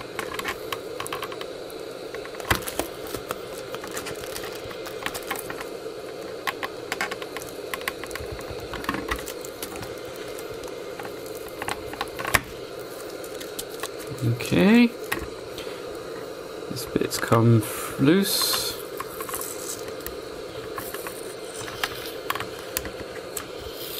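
A plastic tool scrapes and clicks against a plastic case.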